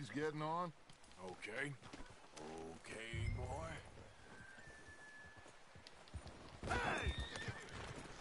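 Horse hooves thud on snow.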